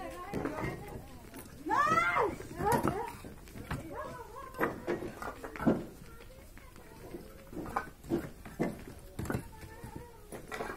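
Bricks clatter and knock as they are stacked and tossed.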